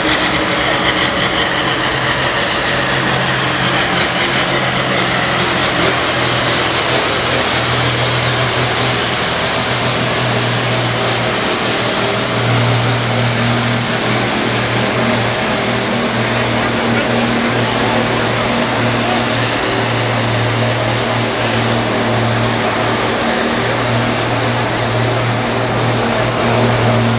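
A tractor engine roars loudly and steadily under heavy strain.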